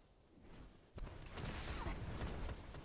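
A pistol fires rapidly at close range.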